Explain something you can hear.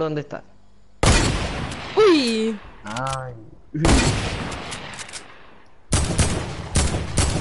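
Gunfire rattles in rapid bursts, close and loud.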